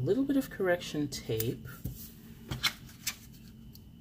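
Paper rustles and tears as a sheet is pulled loose.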